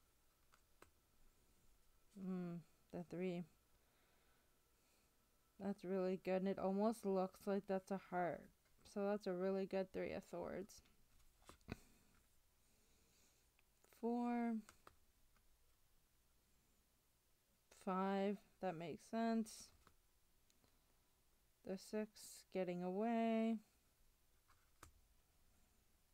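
Stiff cards slide and tap softly against each other.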